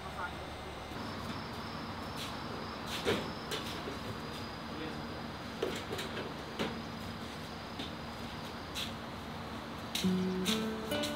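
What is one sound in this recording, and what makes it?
Objects clatter and knock as things are moved about.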